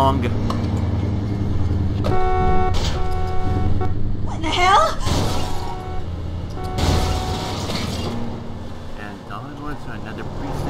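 A car engine hums and revs as a car drives off.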